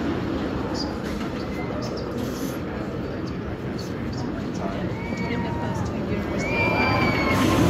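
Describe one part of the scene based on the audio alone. A roller coaster train rumbles and clatters along a wooden track.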